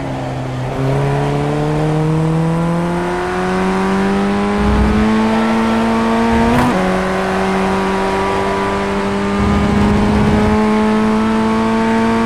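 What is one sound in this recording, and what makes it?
A racing car engine whines loudly, rising in pitch as it speeds up and dropping sharply at each gear change.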